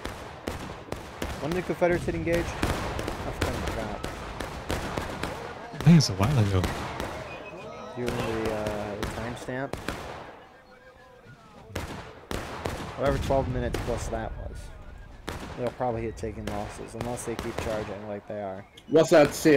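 Rifles fire in scattered volleys.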